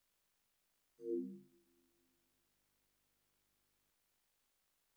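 A soft electronic chime rings out and slowly fades.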